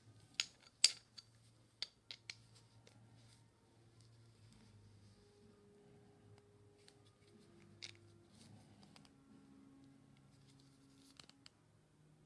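Pliers grip and turn a metal nut with faint clicks.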